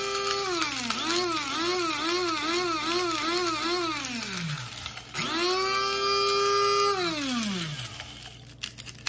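A small electric grinder whirs loudly, its pitch wavering, then winds down and starts again.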